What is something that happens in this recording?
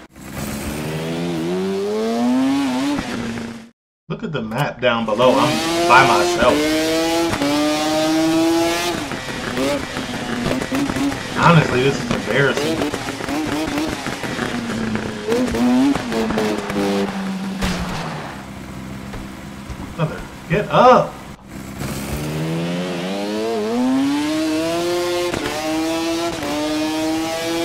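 A motorcycle engine revs high and shifts through the gears, rising and falling in pitch.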